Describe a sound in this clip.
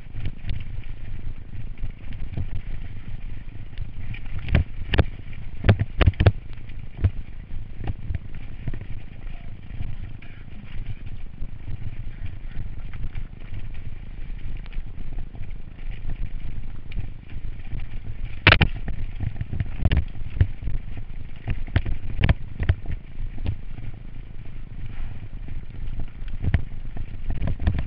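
Bicycle tyres crunch and rattle over a rocky trail.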